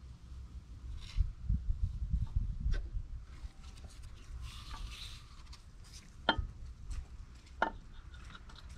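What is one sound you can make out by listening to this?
Metal parts clink and knock as a part is worked loose on an engine.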